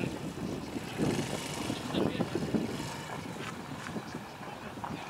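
Men call out to each other at a distance outdoors.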